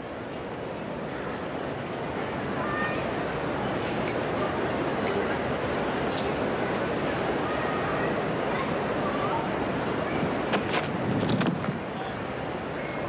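A crowd murmurs and applauds outdoors.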